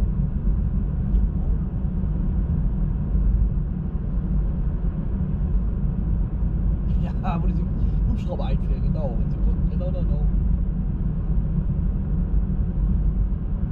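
A car engine hums steadily inside a moving car.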